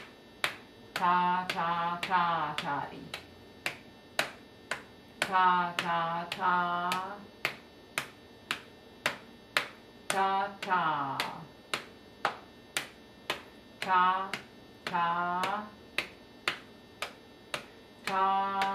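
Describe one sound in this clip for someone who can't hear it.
A middle-aged woman chants short rhythmic syllables in a clear, sing-song voice, close by.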